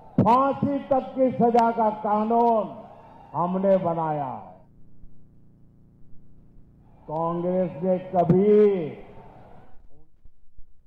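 A man speaks forcefully through a microphone and loudspeakers.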